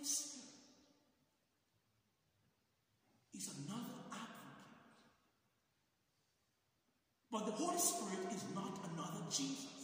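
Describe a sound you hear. A man speaks calmly through a microphone, echoing in a large hall.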